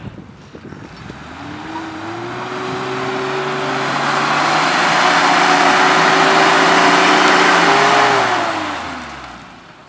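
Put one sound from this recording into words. A vehicle's engine roars loudly as it climbs close by and then fades.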